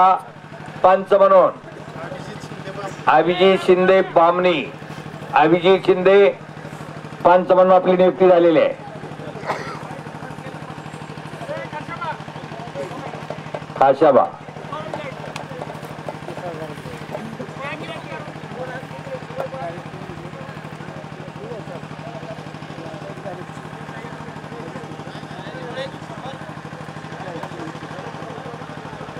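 A crowd murmurs and calls out outdoors.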